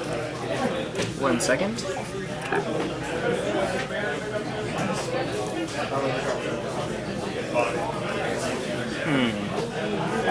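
Playing cards riffle as a deck is shuffled.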